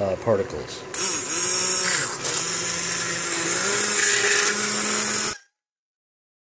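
A hand blender whirs loudly in a pot of liquid.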